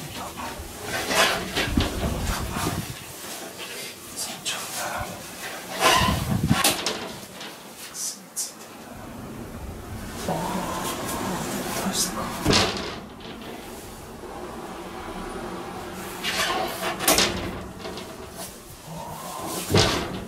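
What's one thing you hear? A man knocks and scrapes at a metal door frame.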